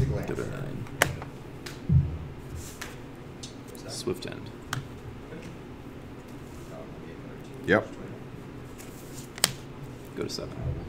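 Playing cards slide and tap on a soft mat.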